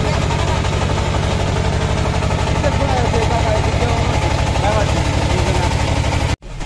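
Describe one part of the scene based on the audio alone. A boat engine chugs loudly and steadily.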